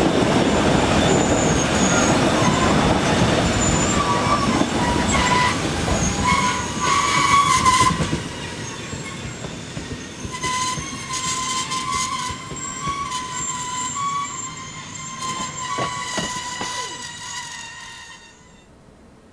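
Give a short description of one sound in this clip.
A train rumbles past on the rails.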